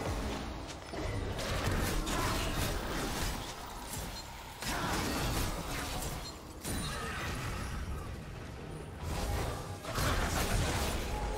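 Fantasy game combat sounds whoosh and crackle as spells hit.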